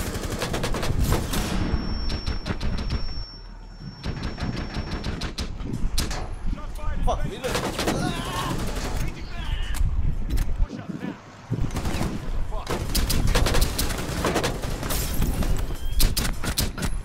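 Guns fire in rapid bursts of loud shots.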